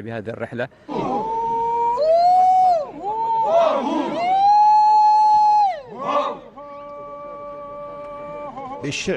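A group of men chant in long, drawn-out tones.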